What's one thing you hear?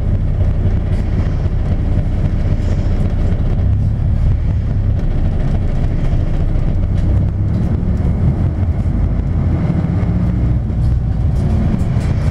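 A car engine hums steadily from inside the moving car.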